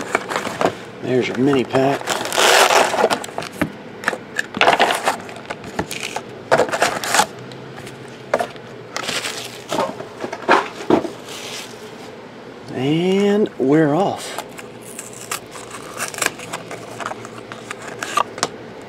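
Foil card packs rustle and crinkle as hands handle them.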